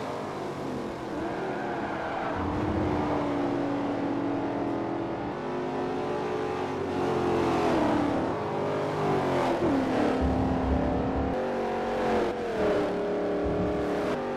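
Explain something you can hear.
Racing car engines roar, rising and falling in pitch as the gears shift.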